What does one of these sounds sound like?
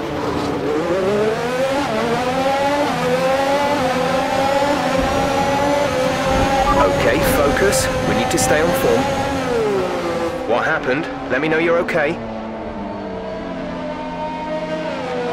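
A racing car engine whines loudly, its pitch rising and falling with gear changes.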